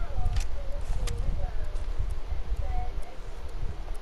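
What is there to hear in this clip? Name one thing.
Footsteps rustle through grass.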